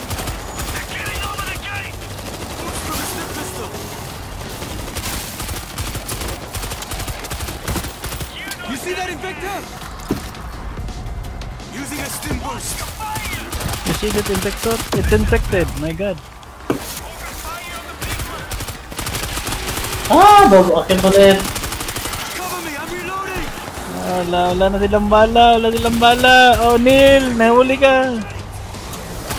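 Rifle gunfire crackles in rapid bursts.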